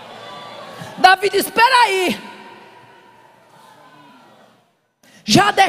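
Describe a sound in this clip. An older woman speaks loudly and with fervour through a microphone in a large echoing hall.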